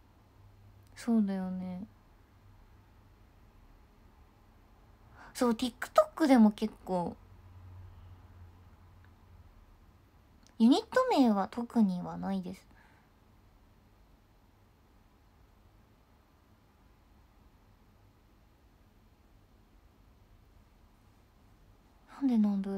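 A young woman speaks close to a microphone in short, calm bursts with long pauses.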